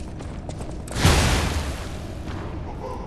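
A burst of dark magic erupts with a rushing roar.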